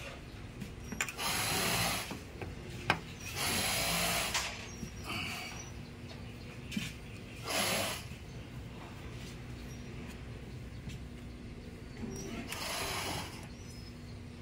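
Gas hisses in short bursts from a hose fitting.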